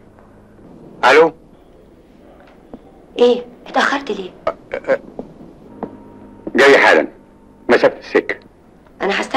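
A woman talks anxiously on the phone nearby.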